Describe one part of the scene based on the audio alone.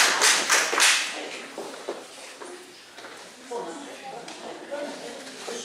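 Children chatter quietly in the background.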